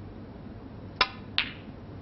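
A snooker cue strikes a ball with a sharp click.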